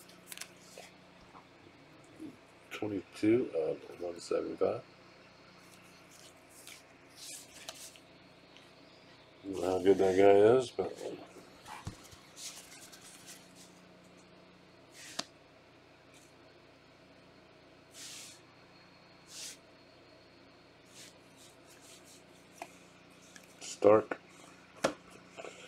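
Trading cards rustle and flick as a stack is shuffled by hand.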